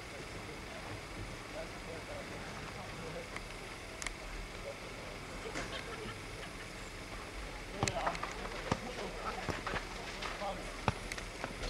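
Young men talk quietly among themselves at a distance.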